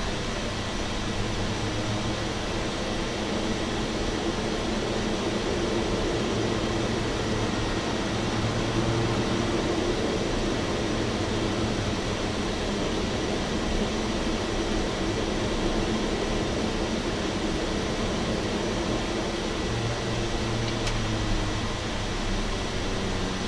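A propeller engine drones steadily close by.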